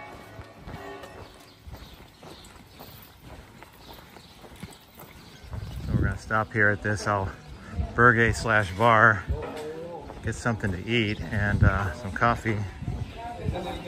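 Footsteps walk along a paved street.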